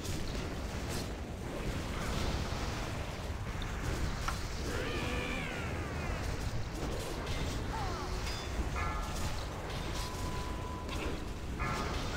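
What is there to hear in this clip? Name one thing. Game spell effects whoosh and chime in quick bursts.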